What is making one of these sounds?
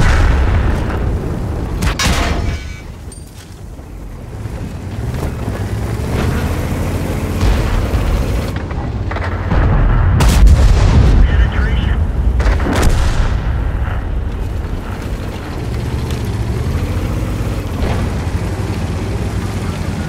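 A heavy tank engine rumbles and roars steadily.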